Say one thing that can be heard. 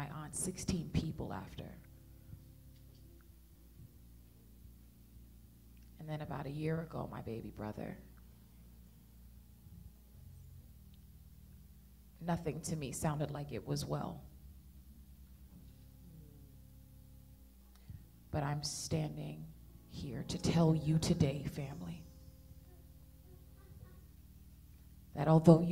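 A woman speaks slowly into a microphone, with long pauses, heard over an online call.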